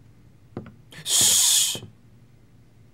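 A man snores loudly in his sleep.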